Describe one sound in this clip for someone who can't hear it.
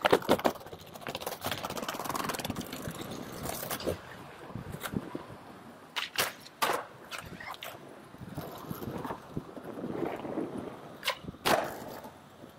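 A skateboard tail snaps and the board clacks on landing.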